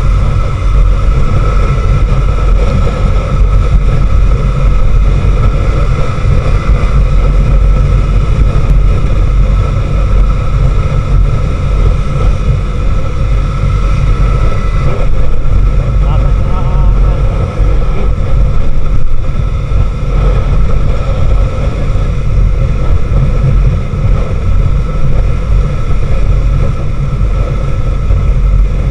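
Wind rumbles loudly against the rider.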